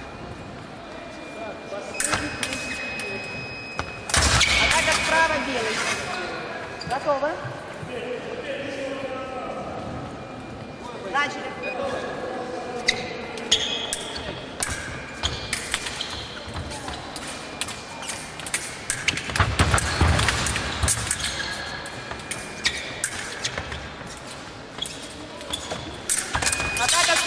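Fencers' shoes squeak and thud on the floor.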